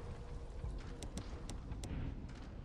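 Soft menu clicks tick a few times.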